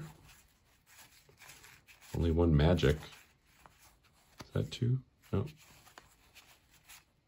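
Stiff cards slide and rustle softly against each other in hands.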